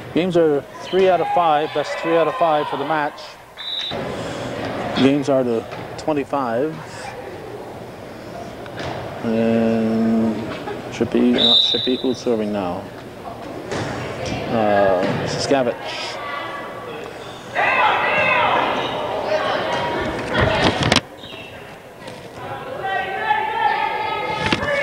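Young women shout and call out in an echoing gym.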